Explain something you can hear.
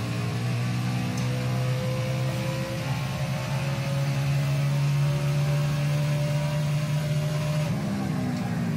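A race car engine roars at high, steady revs.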